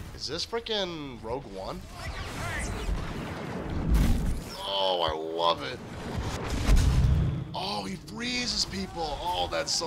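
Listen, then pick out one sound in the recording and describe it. Blaster rifles fire in rapid bursts.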